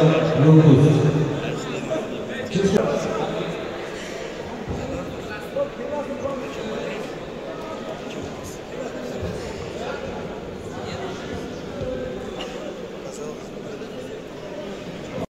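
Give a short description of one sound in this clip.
A crowd murmurs and chatters quietly in an echoing hall.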